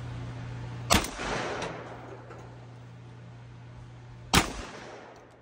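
A shotgun fires a loud blast outdoors.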